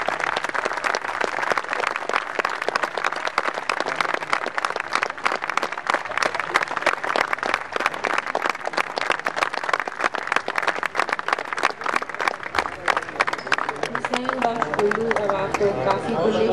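An audience claps loudly and steadily in a large hall.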